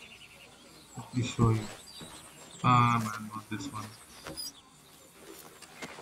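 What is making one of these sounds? Footsteps fall softly on grass.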